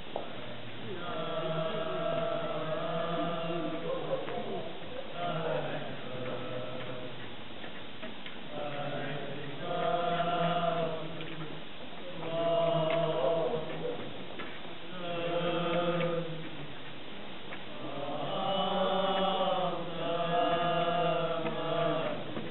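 A group of people sings a slow hymn outdoors in phrases with pauses.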